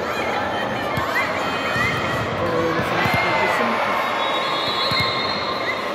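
A volleyball thuds as it is hit and bounced.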